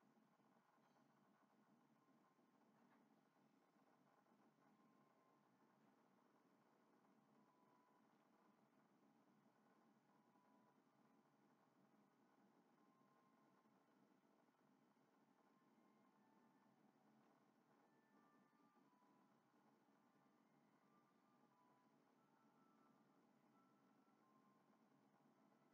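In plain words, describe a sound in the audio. Soft video game music plays quietly through a television speaker.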